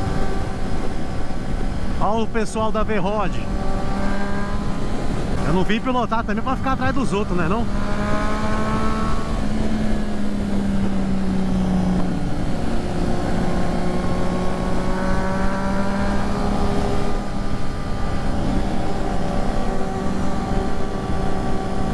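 A motorcycle engine hums steadily at cruising speed, with its pitch wavering now and then.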